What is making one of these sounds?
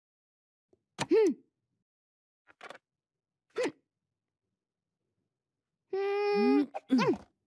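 A young girl speaks with surprised, animated exclamations.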